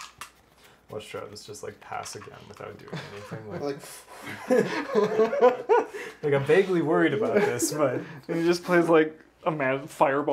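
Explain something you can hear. Several young men talk and banter across a table.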